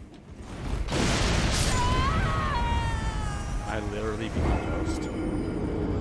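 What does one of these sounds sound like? A man shouts and groans in dismay.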